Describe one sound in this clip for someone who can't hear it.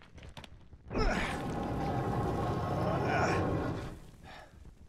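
Heavy stone scrapes and grinds as a lid slides open.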